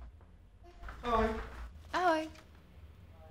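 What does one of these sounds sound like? A young man speaks up close.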